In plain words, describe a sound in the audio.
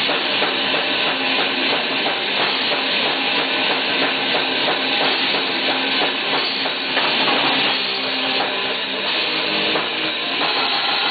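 Two distorted electric guitars play fast, heavy riffs together, loud and close.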